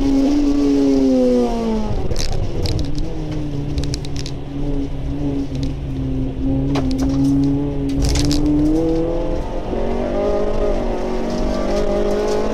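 Rain patters on a car's windshield.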